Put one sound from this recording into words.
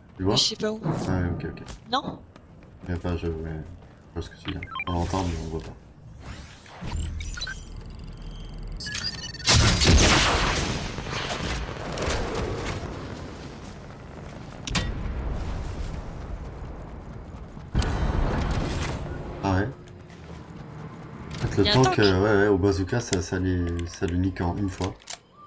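Gunshots and game effects crackle from a video game.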